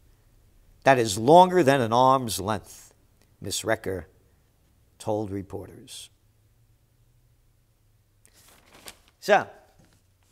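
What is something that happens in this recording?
An elderly man speaks with animation into a close microphone, reading out.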